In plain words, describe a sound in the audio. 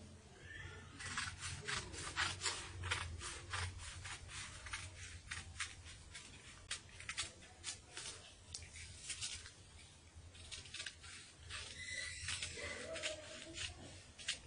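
Scissors snip through stiff paper in quick, repeated cuts.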